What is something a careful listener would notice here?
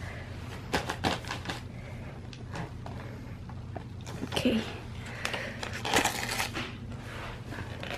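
Wrapping paper crinkles and rustles.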